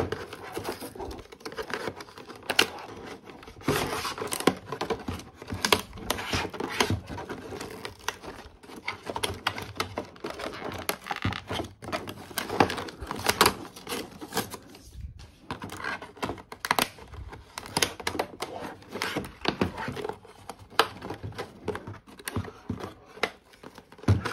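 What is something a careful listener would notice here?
Tape peels away from cardboard with a sticky crackle.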